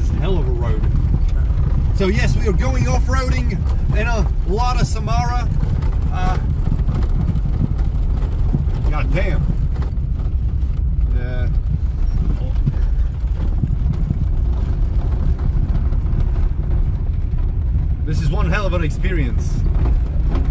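A man talks casually close by, inside the car.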